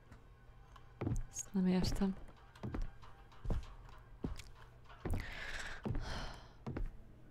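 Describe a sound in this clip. Footsteps thud slowly and steadily.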